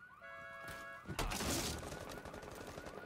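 A sledgehammer smashes through a wooden barricade.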